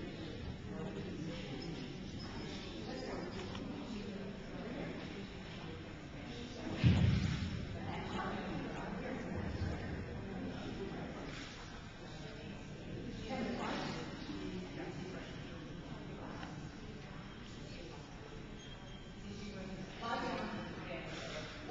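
A woman talks encouragingly to a dog in an echoing hall.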